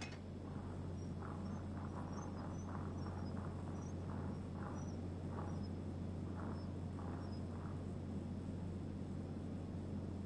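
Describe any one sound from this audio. A hover bike engine hums steadily.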